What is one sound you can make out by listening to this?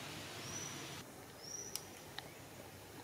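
A monkey chews food with soft crunches.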